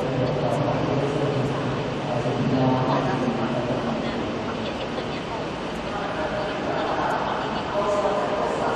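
A wind band with clarinets plays a piece.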